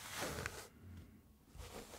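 Fingers rub and tap close to the microphone.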